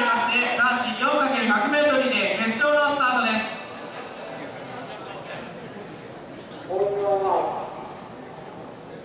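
Spectators chatter and call out nearby.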